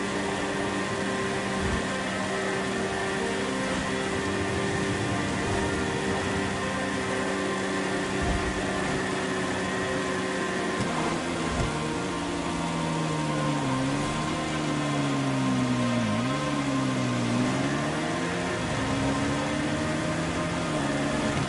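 A motorcycle engine hums steadily, its pitch rising and falling.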